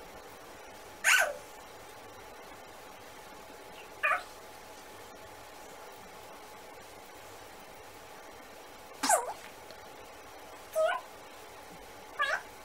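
A toddler squeals and babbles in short high bursts close by.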